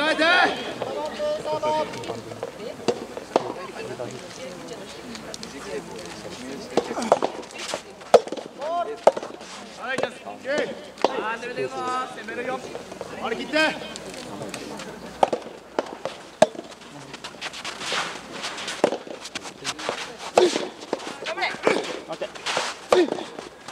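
Young men call out and shout from a distance.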